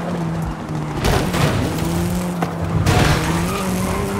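A car scrapes and crashes against a wall.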